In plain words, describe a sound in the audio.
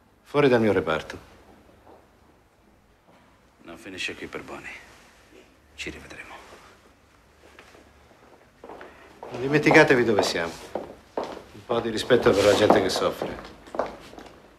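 A middle-aged man speaks firmly, close by.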